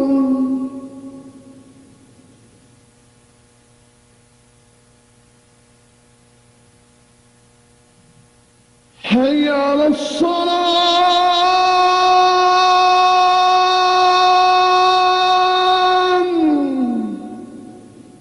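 A man sings a long, drawn-out call in a strong voice.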